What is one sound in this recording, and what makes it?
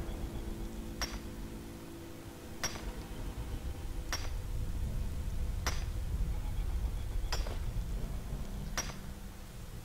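A pickaxe strikes rock in slow, regular blows.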